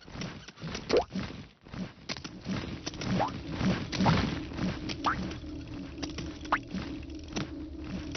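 Short rising cartoon boing sounds play as a game character jumps.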